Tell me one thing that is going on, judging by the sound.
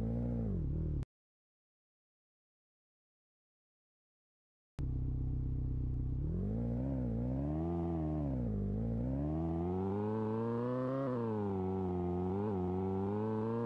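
A sports car engine hums and revs up and down.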